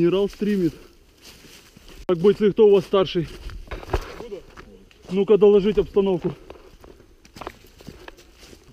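Footsteps crunch on snow and dry leaves.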